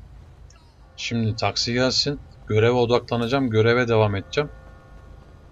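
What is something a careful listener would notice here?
A young man speaks with animation into a nearby microphone.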